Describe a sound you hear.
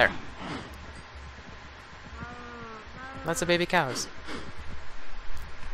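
Cows moo close by.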